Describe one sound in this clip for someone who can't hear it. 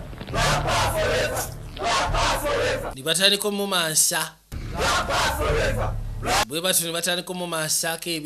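A crowd of women and men shout and chant loudly.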